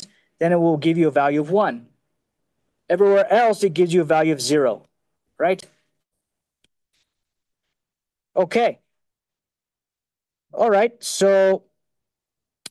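A man lectures calmly through a microphone, speaking in short phrases with pauses.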